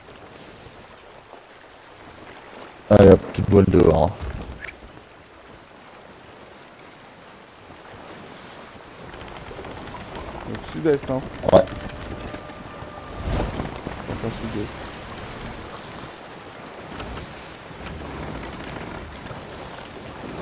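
Wind blows steadily through sails.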